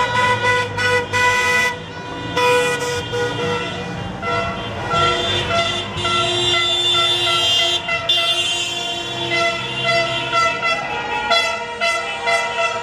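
Cars drive slowly past nearby.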